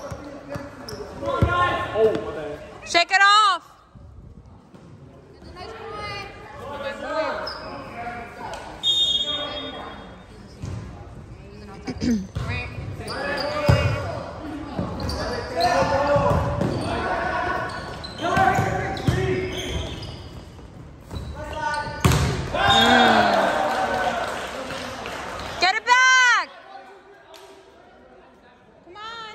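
Young men shout and call out to each other in a large echoing gym.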